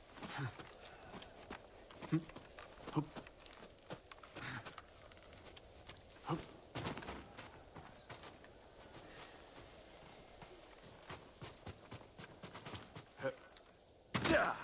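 Footsteps rustle across a straw roof.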